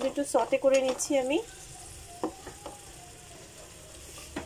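A spatula stirs sliced vegetables in a nonstick frying pan.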